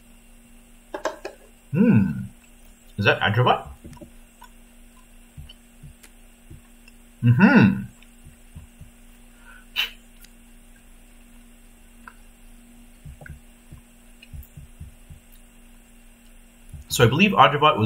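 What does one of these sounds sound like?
A man speaks into a microphone in short bursts, with pauses in between.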